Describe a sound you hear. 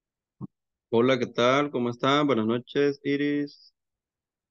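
A man speaks calmly, close to a headset microphone, as if over an online call.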